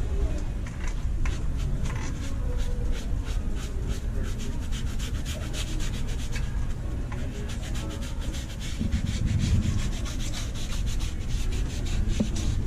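A small brush scrubs briskly against a shoe.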